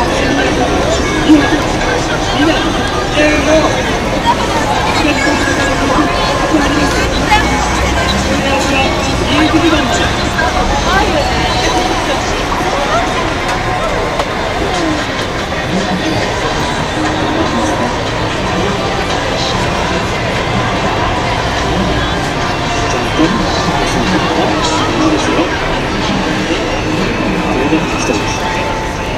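A crowd of pedestrians chatters outdoors on a busy city street.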